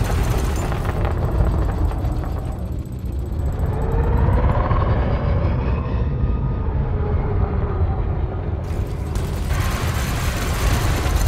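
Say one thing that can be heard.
A spaceship engine hums with a deep, steady rumble.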